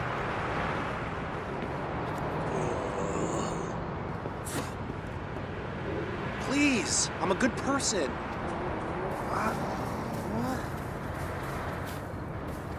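Footsteps hurry over the ground.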